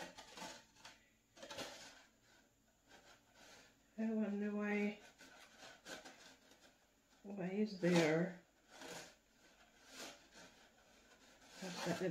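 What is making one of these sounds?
A small plastic tool pokes and scrapes in loose soil.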